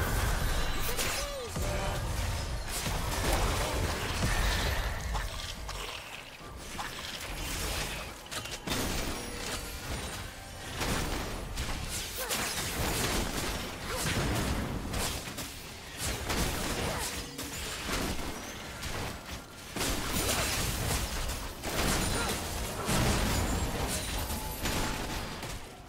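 Video game spells crackle and boom in a busy fight.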